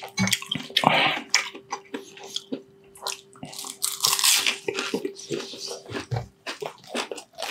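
A man chews crunchy fried food loudly and close up.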